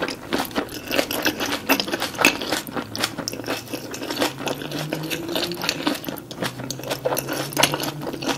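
Wet lip smacks and mouth clicks sound close up.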